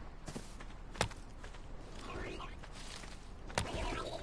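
Leaves rustle as a hand strikes a bush.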